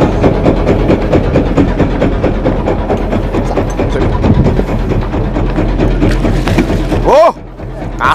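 A boat motor rumbles loudly up close.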